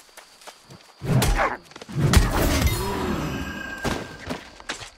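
A wolf snarls and yelps in pain.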